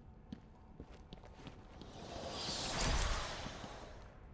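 Footsteps echo along a narrow stone corridor.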